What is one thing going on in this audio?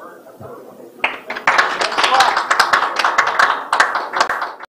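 A middle-aged man speaks close to a microphone.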